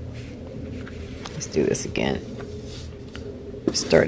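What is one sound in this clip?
Paper peels away from cardboard with a tearing sound.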